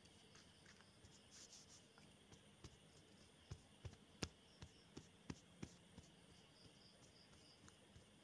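Horse hooves thud softly on soft ground at a walk.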